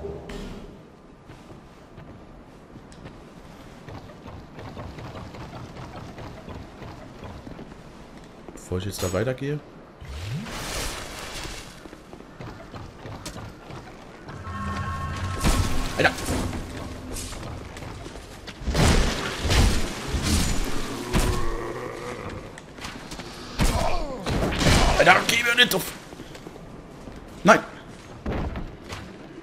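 Footsteps thud on wood and stone.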